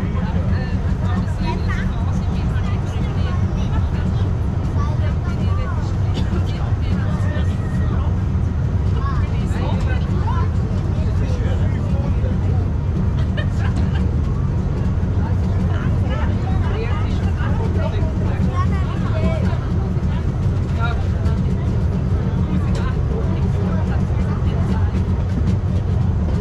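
A railway car rumbles steadily as it climbs a track.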